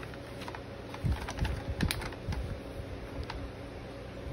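Fabric rubs and rustles right against the microphone.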